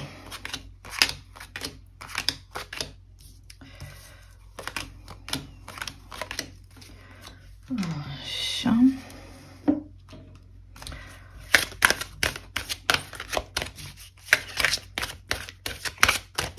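Playing cards slap and rustle as they are shuffled and laid down.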